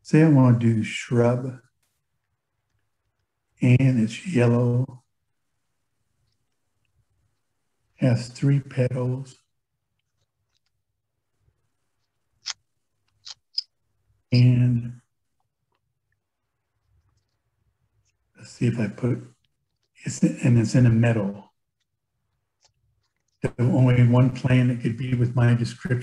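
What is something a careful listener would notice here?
A man speaks calmly through an online call microphone, in short phrases with pauses.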